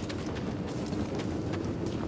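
Footsteps scuff on rock.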